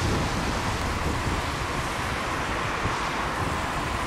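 A second car pulls out and drives off nearby.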